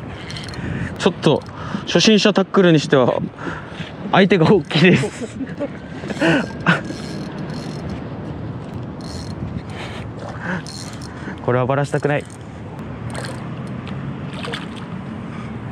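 A fishing reel whirs as its line is wound in.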